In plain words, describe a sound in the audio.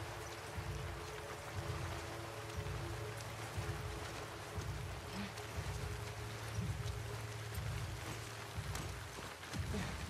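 Tall grass rustles and swishes as someone crawls slowly through it.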